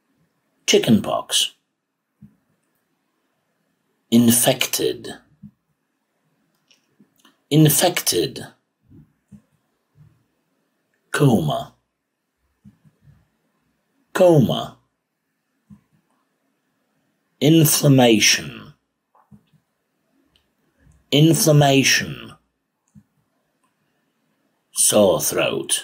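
A middle-aged man reads out single words clearly into a microphone, with pauses between them.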